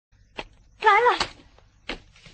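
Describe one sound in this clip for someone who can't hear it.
A young boy lets out a short wavering cry.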